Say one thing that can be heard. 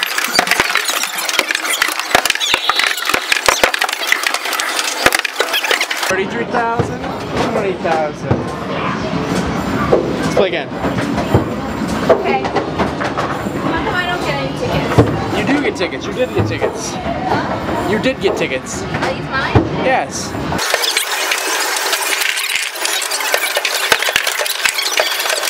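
Arcade games jingle and clatter in a noisy hall.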